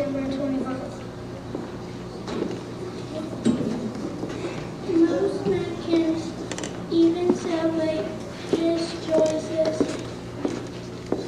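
A children's choir sings together in an echoing hall.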